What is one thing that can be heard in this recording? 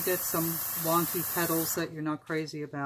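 An airbrush hisses steadily.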